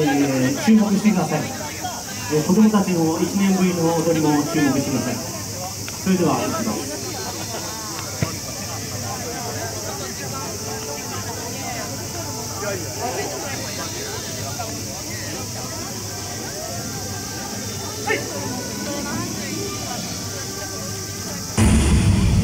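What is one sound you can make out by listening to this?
A crowd of young people chatters nearby outdoors.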